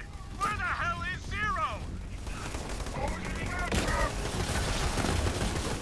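A rifle fires a rapid string of loud shots.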